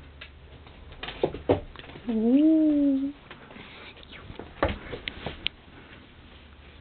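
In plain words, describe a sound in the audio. A dog's paws patter and thump on a wooden floor.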